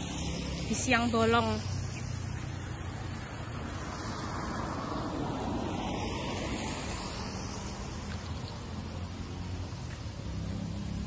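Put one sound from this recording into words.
Footsteps tap on a wet pavement.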